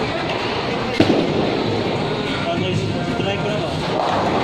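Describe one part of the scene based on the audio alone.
A bowling ball rolls down a lane with a low rumble.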